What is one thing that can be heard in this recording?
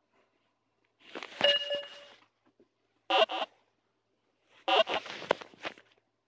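A ball wobbles and clicks on the ground.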